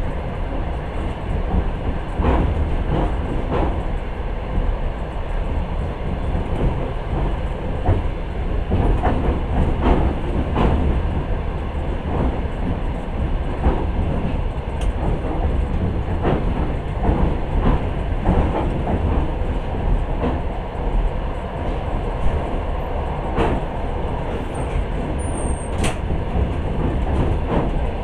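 A train rumbles steadily along the track, with wheels clacking over rail joints.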